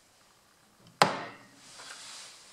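Glasses clink together sharply.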